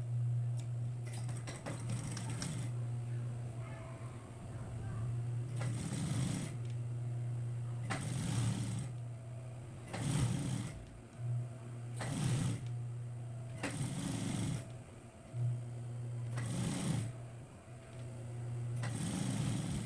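A sewing machine needle stitches in quick bursts, starting and stopping.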